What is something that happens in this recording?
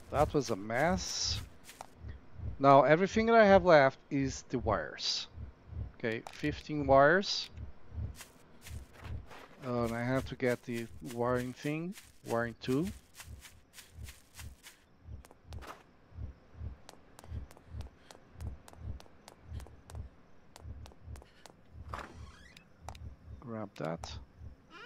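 Footsteps thud quickly and steadily on the ground.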